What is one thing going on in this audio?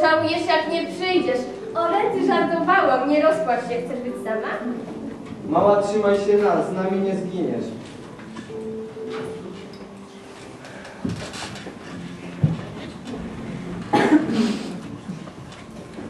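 A teenage girl laughs.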